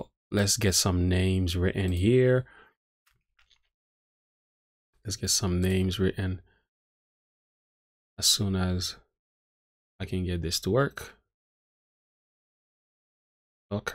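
A man speaks calmly and closely into a microphone, in short phrases with pauses.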